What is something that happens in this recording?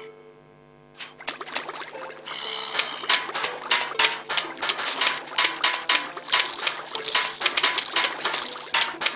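Game plants fire peas with quick popping sounds.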